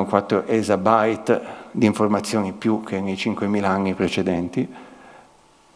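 A man speaks calmly into a microphone in a room.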